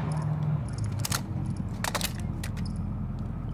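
A rifle clicks and clacks as it is reloaded.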